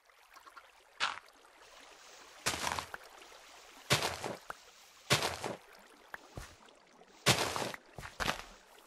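Blocks of dirt crunch loudly in short bursts as they are dug out.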